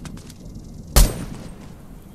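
A single gunshot cracks sharply.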